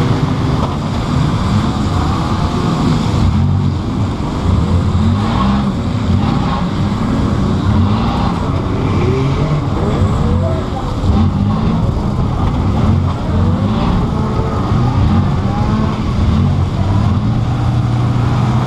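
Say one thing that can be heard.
A loud engine roars and revs up and down.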